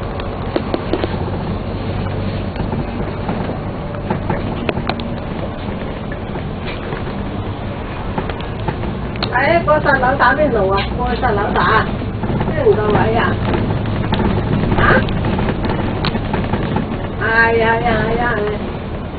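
A bus engine rumbles steadily while driving through traffic.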